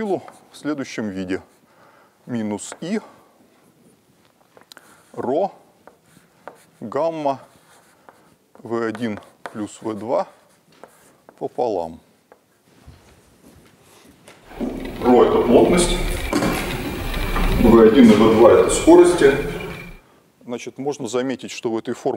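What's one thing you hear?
A middle-aged man lectures calmly.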